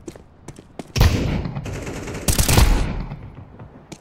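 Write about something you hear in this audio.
A rifle fires a few loud shots that echo.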